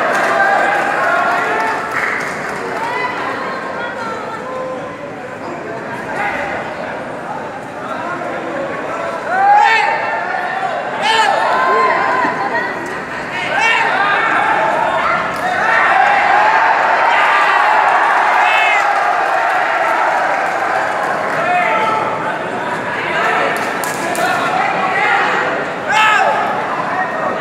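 A large crowd of spectators cheers and shouts loudly.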